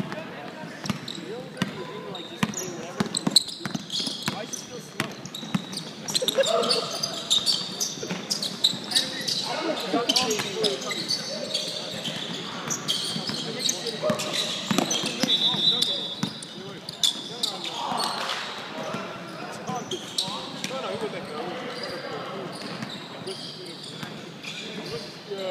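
Young adult players shout to each other across the gym.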